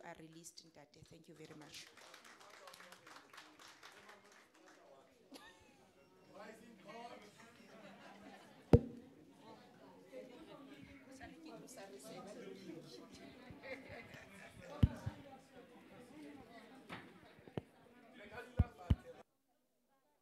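Several men and women chat with one another nearby.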